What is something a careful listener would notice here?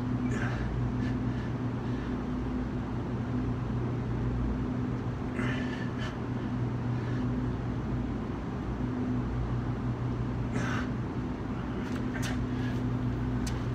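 A man breathes out hard with effort during push-ups.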